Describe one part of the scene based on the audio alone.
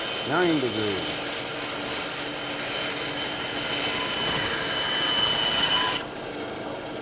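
A band saw cuts through wood with a steady high whine.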